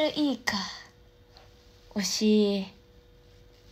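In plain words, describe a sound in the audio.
A young woman speaks close up, playfully.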